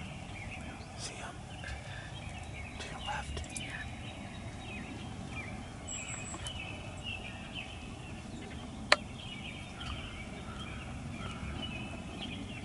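A turkey rustles dry leaves as it walks through the brush.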